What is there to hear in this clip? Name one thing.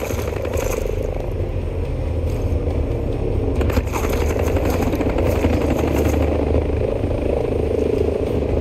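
A helicopter's rotor thuds and drones steadily overhead.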